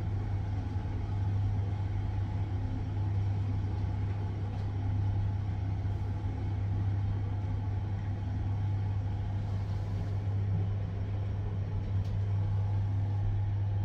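An elevator car hums steadily as it travels.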